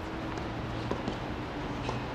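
A tennis ball bounces a few times on a hard court.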